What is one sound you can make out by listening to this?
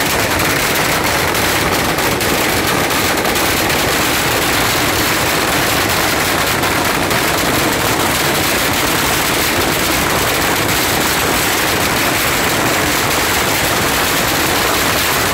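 Strings of firecrackers crackle and bang without pause, loud and close.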